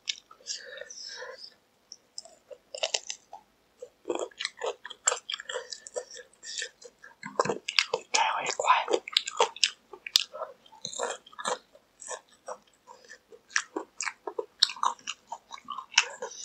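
A young man chews crunchy fried chicken close to a microphone.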